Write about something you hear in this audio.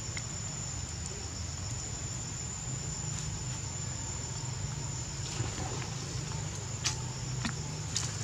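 Small monkeys shuffle and scratch at each other close by.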